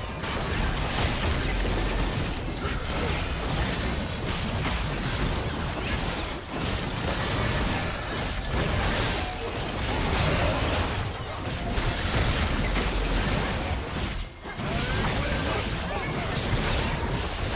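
Game spells and attacks crackle and boom in a fight against a large monster.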